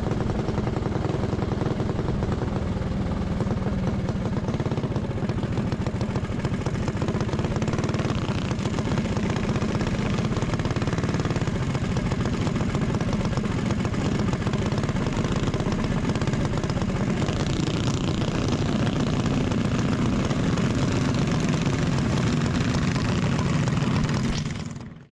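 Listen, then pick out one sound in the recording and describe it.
A go-kart engine buzzes loudly up close.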